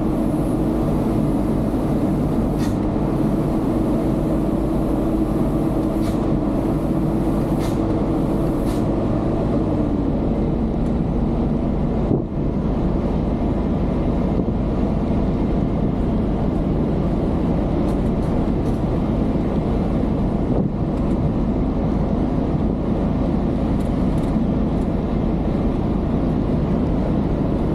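A heavy truck engine drones steadily from inside the cab, dropping in pitch as a gear changes.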